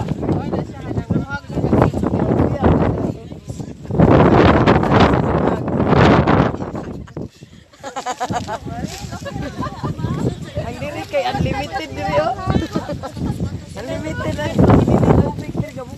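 Several men and women talk and call out nearby.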